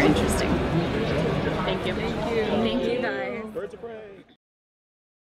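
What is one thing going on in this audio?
A young woman speaks and laughs close to a microphone.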